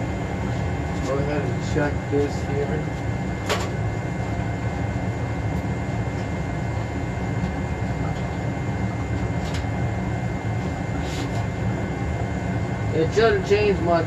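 A man speaks briefly up close.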